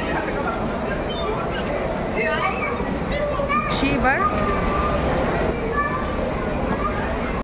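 An escalator hums and rumbles steadily.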